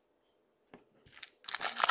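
Plastic-wrapped card packs rustle and crinkle in someone's hands.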